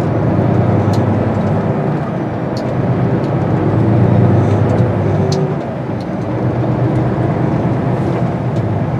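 A vehicle's engine hums from inside the cab as it drives.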